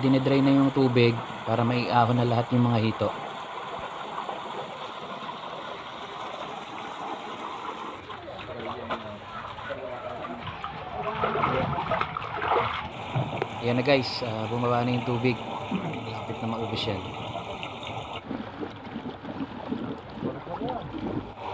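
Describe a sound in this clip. Water gushes and splashes out of a pipe onto the ground.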